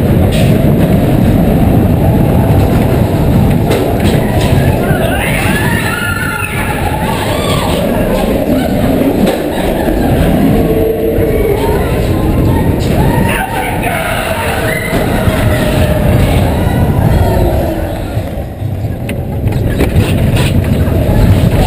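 A roller coaster rumbles and clatters along its track.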